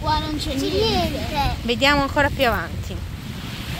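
A young boy talks and squeals excitedly close by.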